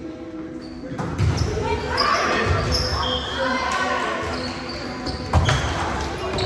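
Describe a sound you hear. A volleyball thumps off players' arms and hands.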